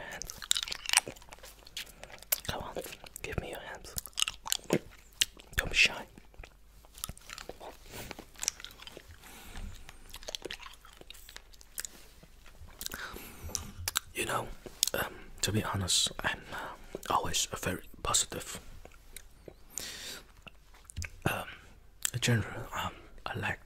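A man makes wet sucking and clicking mouth sounds close to a microphone.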